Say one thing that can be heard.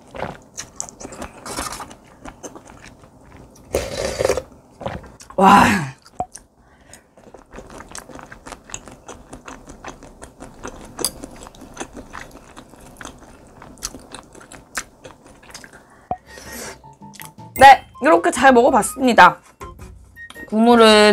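Chopsticks and a spoon click against metal and glass bowls.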